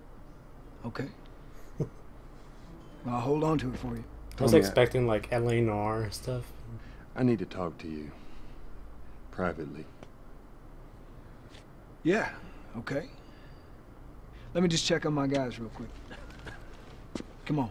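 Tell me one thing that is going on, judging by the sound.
A younger man answers calmly close by.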